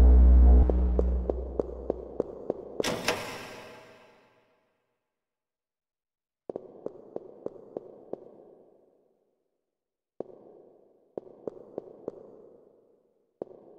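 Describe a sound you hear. Footsteps echo across a hard floor in a large hall.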